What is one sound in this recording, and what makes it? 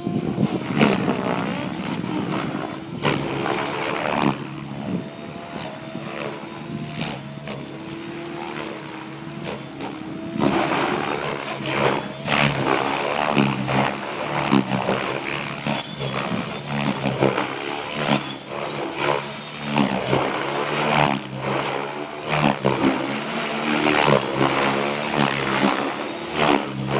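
A model helicopter's engine whines and its rotor buzzes as it flies overhead.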